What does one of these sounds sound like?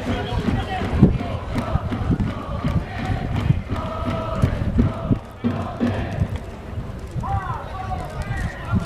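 A large crowd of fans chants and sings loudly outdoors.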